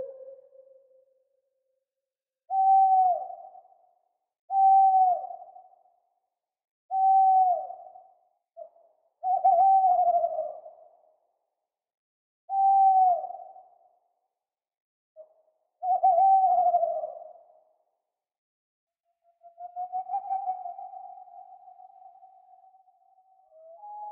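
An owl hoots in repeated calls, each one short and falling away.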